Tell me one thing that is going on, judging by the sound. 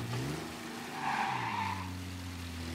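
Tyres squeal on a wet road as a vintage car corners.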